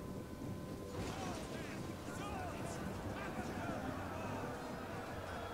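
A large crowd of soldiers clashes with weapons clattering.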